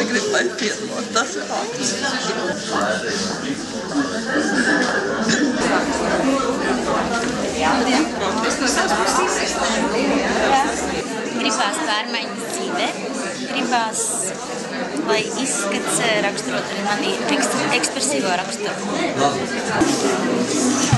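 Many women chatter and talk at once.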